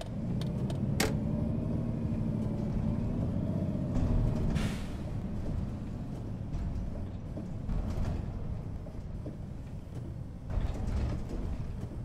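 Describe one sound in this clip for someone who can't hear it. A bus engine rises and falls in pitch as the bus pulls away.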